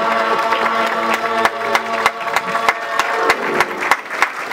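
A choir of men and women sings together and ends a song.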